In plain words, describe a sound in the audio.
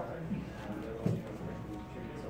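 A card is set down on a play mat with a soft tap.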